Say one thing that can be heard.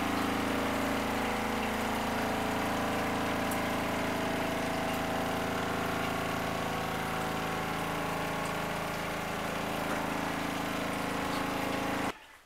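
Water sloshes inside a small washing machine.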